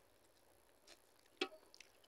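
A woman tears a flatbread with her hands.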